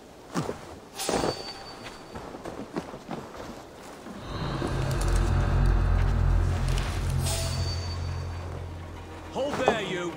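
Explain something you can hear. Footsteps rustle through grass and leafy plants.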